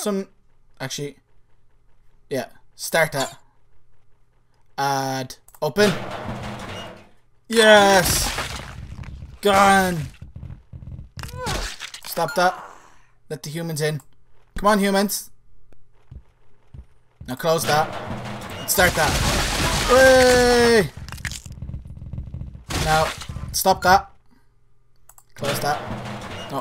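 A young man talks into a close microphone with animation, sometimes shouting and laughing.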